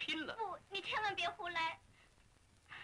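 A woman speaks quickly and with emotion, close by.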